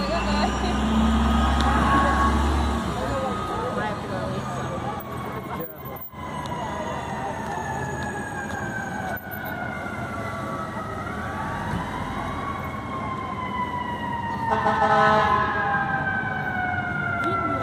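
A fire truck siren wails and rises and falls in pitch.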